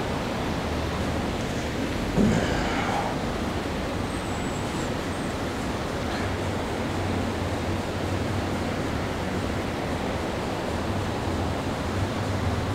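Ceiling fans whir steadily.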